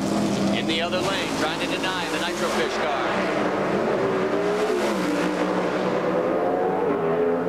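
Drag racing cars roar loudly as their engines rev and accelerate down the track.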